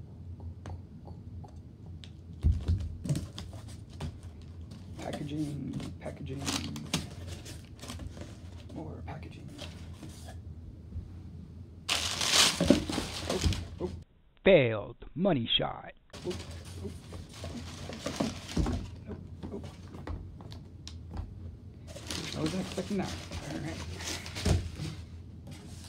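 A cardboard box scrapes and thumps as it is opened and moved.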